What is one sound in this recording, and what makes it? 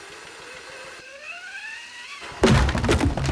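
A wooden pole creaks as it strains against a gate.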